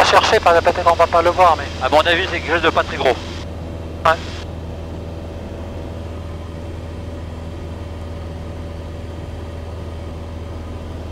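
A light aircraft's engine drones steadily throughout.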